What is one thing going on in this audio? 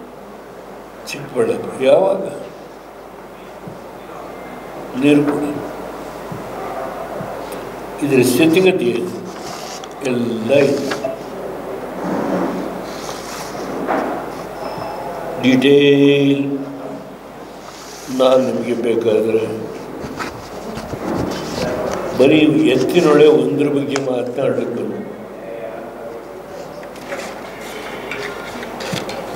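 An elderly man speaks slowly and firmly into a microphone.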